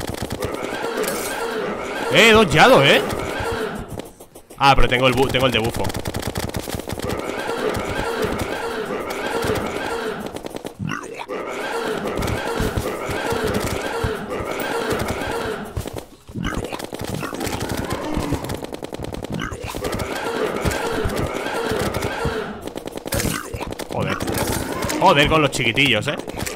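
Video game battle effects sound with rapid hits and blasts.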